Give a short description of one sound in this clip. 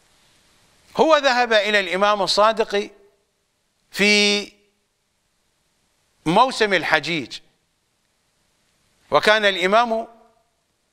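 An older man speaks with animation into a close microphone, in short bursts with pauses.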